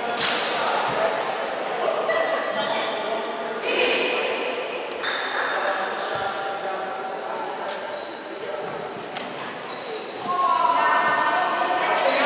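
A crowd of voices chatters in a large echoing hall.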